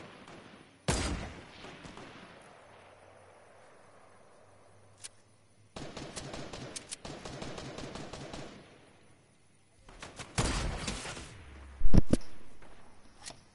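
Loud gunshots ring out and echo away.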